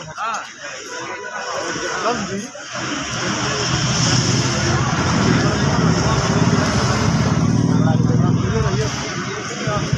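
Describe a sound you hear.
Flames crackle and roar on a burning tree trunk.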